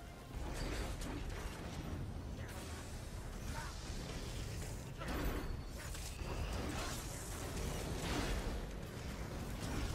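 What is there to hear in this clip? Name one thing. Heavy blows thud against a large creature.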